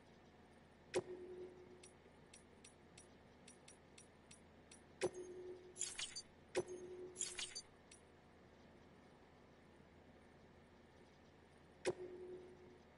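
Soft menu clicks and short beeps sound as options change.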